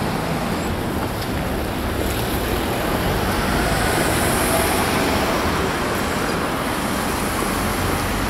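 A bus engine rumbles nearby.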